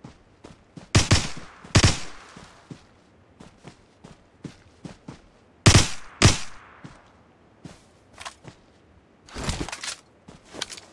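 Gunshots crack loudly in short bursts.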